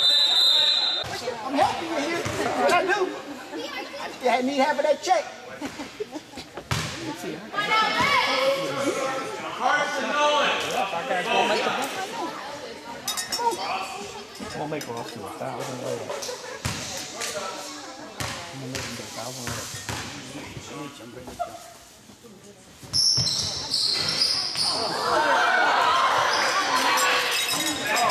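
Young men call out to each other in an echoing gym.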